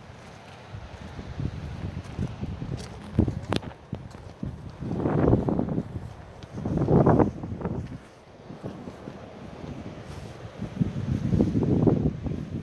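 Wind gusts and buffets the microphone outdoors.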